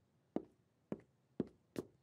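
A man's footsteps tap across a hard floor.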